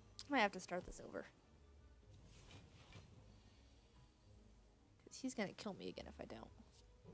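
A young woman talks with animation into a microphone.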